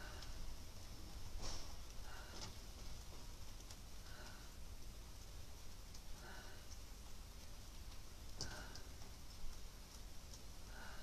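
Bare feet shift softly on thick bedding.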